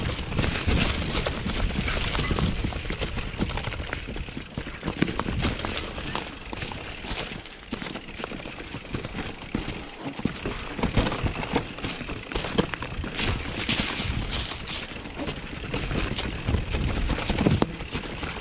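A bicycle frame and chain rattle and clatter over bumps.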